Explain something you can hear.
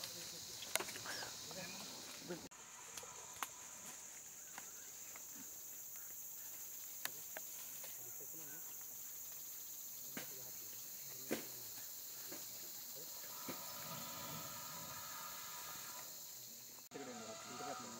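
Leaves rustle as a large animal brushes past.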